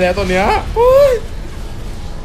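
A young man exclaims with animation close by.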